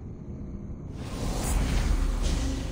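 Magical sparkles crackle and fizz.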